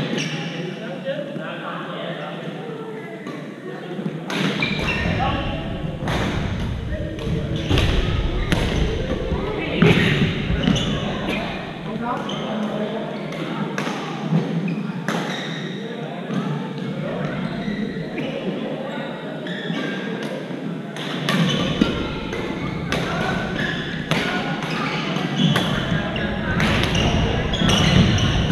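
Badminton shuttlecocks are struck with sharp pops in a large echoing gym.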